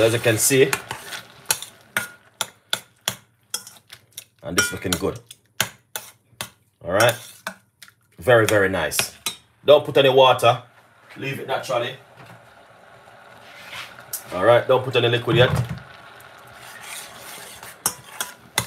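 A metal spoon scrapes and clinks against a pot while stirring.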